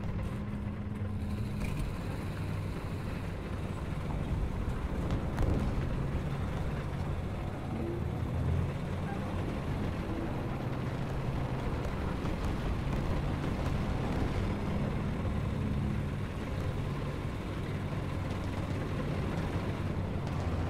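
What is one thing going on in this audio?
Tank tracks clatter and creak over the ground.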